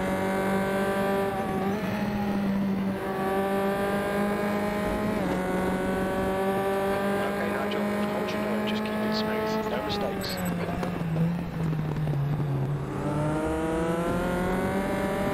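A racing car engine roars at high revs, drops in pitch under braking and then climbs again.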